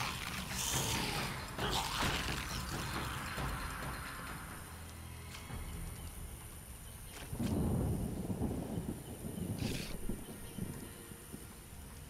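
A sword slashes and clangs against a monster.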